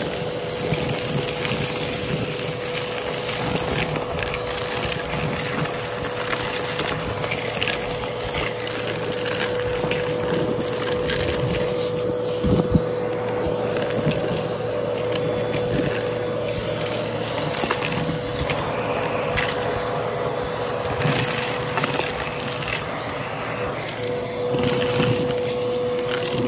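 A vacuum cleaner whines steadily up close.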